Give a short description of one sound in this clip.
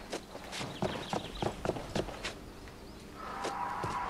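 Footsteps tap quickly on pavement.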